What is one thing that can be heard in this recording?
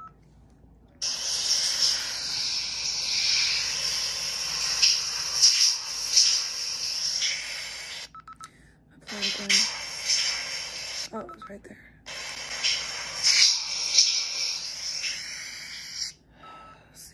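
A young woman whispers close to a microphone.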